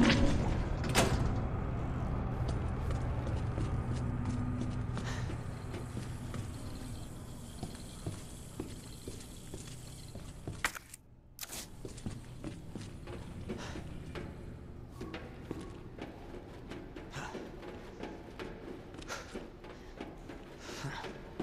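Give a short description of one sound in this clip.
Footsteps tap on hard floors and metal grates.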